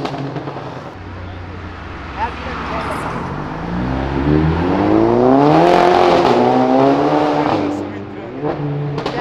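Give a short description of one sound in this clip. A car engine revs loudly, rising and falling in pitch as it speeds past.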